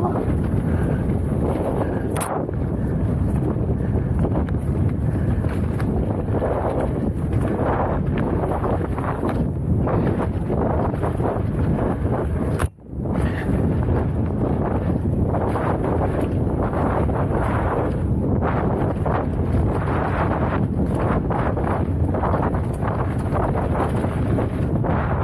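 Tyres rattle and crunch over a rough dirt trail.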